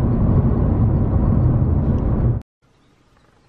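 A car engine and tyres rumble steadily on a motorway.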